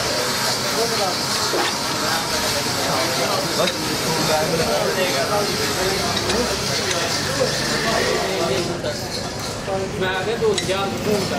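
Metal tools clink against an engine part.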